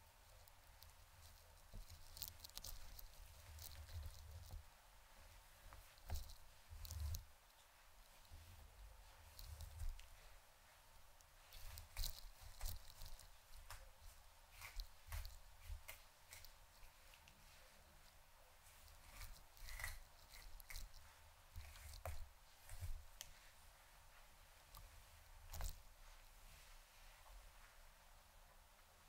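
A comb rustles through long hair close by.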